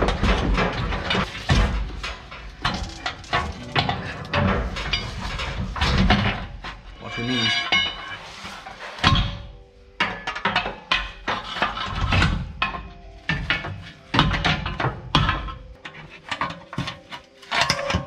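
Metal tools clank and knock under a vehicle.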